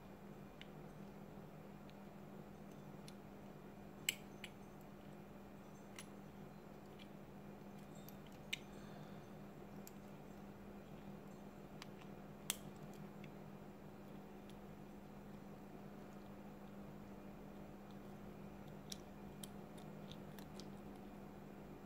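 A metal tool clicks and scrapes against a plastic part.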